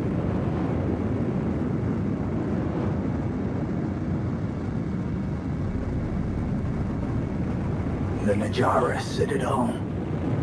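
A spacecraft engine roars steadily.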